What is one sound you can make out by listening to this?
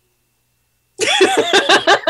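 A young woman laughs loudly through an online call.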